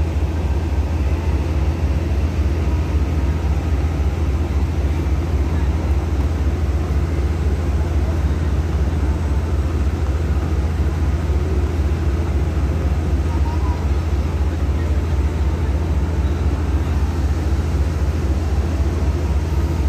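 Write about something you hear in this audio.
An electric commuter train rumbles by along an elevated track.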